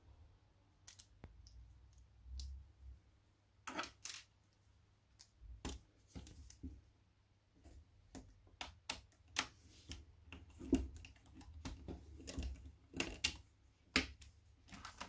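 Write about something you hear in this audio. Small plastic and metal parts click and tap on a hard surface close by.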